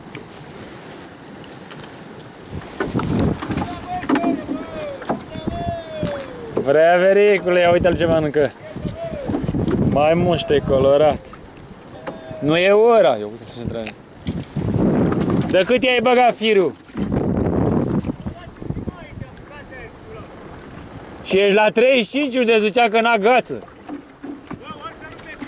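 Water laps and splashes against the side of a small boat.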